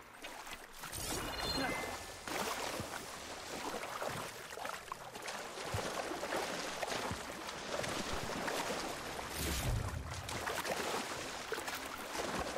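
Water splashes and sloshes as someone swims through it.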